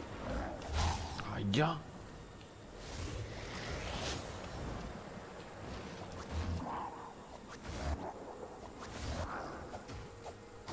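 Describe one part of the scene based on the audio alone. Sword slashes and energy blasts whoosh and zap in quick bursts.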